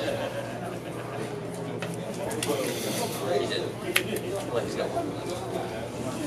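Playing cards rustle and flick as they are shuffled in hands.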